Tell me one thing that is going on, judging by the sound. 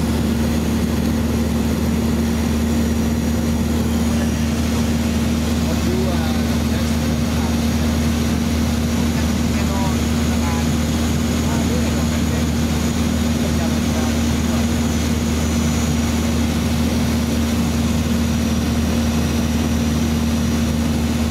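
A propeller plane's engine drones steadily and loudly from close by.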